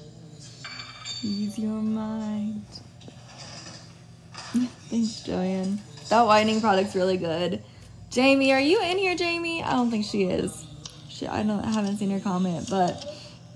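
A young woman talks close to a microphone with animation.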